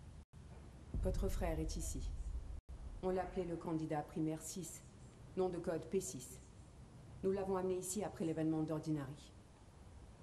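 An older woman speaks calmly and slowly.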